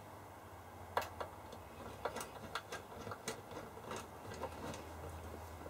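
Knobs click as fingers turn them on a panel.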